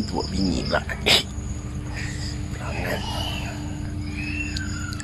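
Water laps gently around a swimming man.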